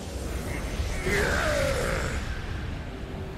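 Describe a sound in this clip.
A deep blast booms and rumbles.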